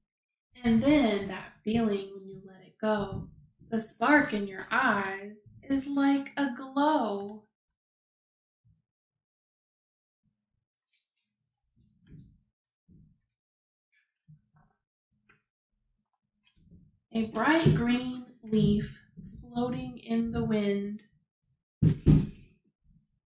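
A woman reads aloud expressively into a nearby microphone.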